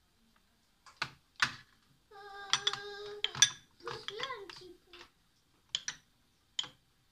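Fingers knock and clink against a metal platter while picking up food.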